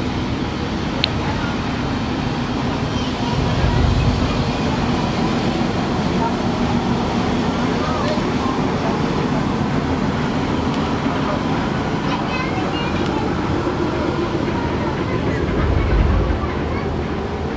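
A large ship's engine rumbles steadily nearby.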